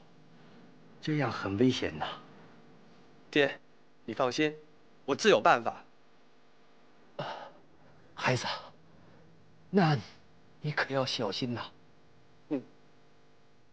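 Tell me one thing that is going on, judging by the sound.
An elderly man speaks in a pleading voice.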